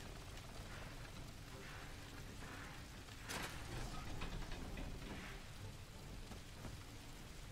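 Flames crackle steadily.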